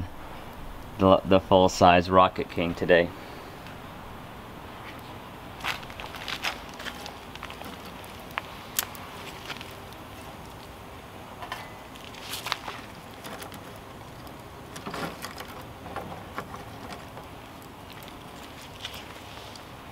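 A small wood fire crackles softly.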